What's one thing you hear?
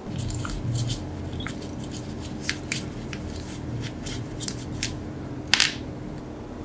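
A screwdriver clicks against a small metal screw.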